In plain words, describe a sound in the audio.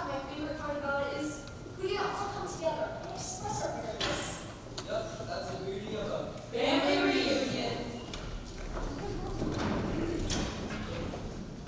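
Footsteps shuffle across a wooden floor.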